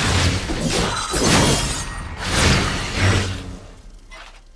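A magic spell crackles and bursts loudly.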